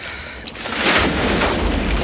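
Flames crackle and roar through burning wreckage.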